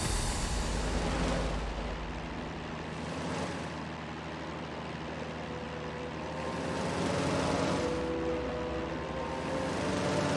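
Propeller plane engines drone steadily in a low hum.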